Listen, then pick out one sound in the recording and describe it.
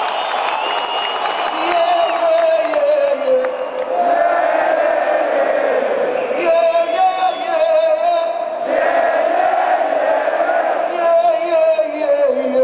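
A live rock band plays loudly in a large arena.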